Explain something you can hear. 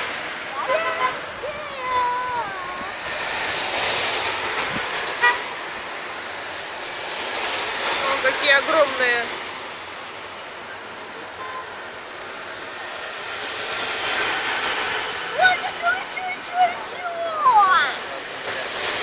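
Men and women in a roadside crowd call out and cheer nearby.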